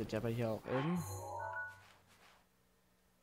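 A soft electronic chime rings out.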